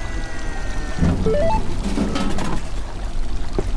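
A vending machine whirs.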